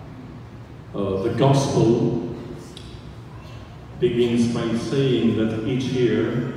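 A man speaks over a loudspeaker, echoing in a large hall.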